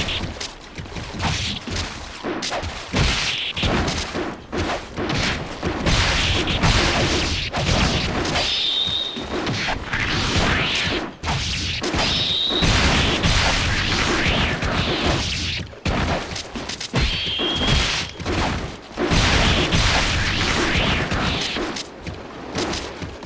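Swords clash and clang in quick bursts.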